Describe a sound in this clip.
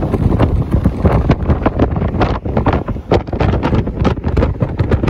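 Wind rushes and buffets past an open window.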